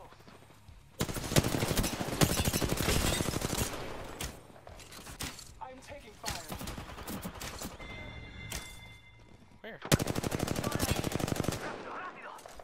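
A rapid-fire gun shoots in long, loud bursts.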